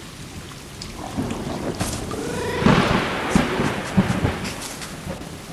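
Two cats hiss and yowl as they scuffle.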